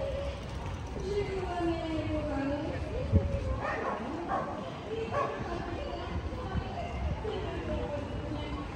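Men and women chat nearby in a crowd outdoors.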